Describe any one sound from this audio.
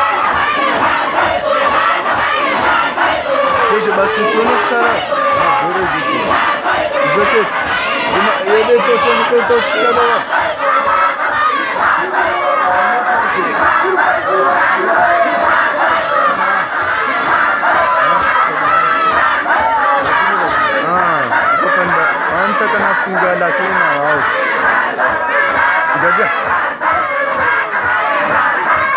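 A large crowd of men chants and sings together outdoors.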